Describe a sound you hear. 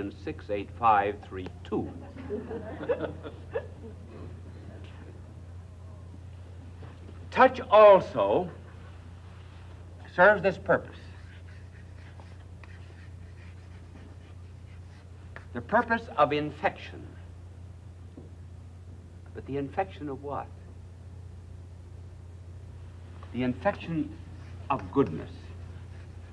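An elderly man speaks slowly and deliberately, with long pauses between phrases.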